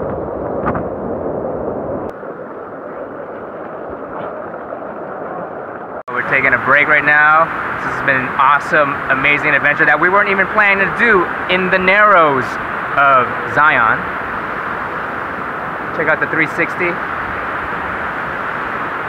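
A river rushes steadily over rocks outdoors.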